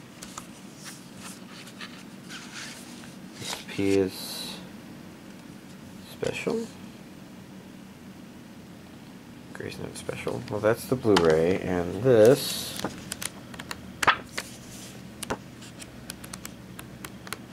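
A plastic disc case clicks and rattles as it is handled.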